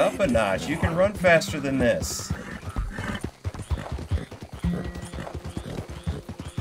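A horse's hooves thud steadily on a dirt path.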